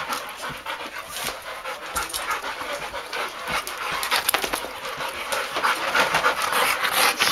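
Dog paws patter and scrabble on a rug.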